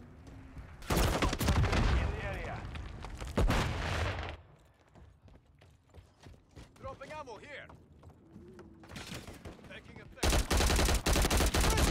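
Rapid automatic gunfire rattles loudly in bursts.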